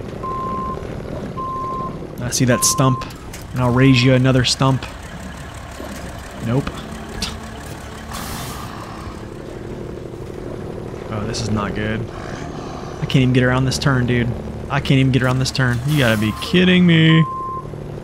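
A truck engine rumbles steadily as the truck crawls over rocks.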